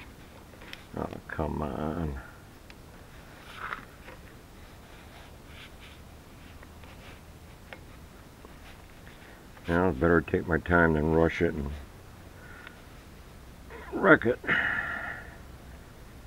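An elderly man speaks calmly in short bursts close by.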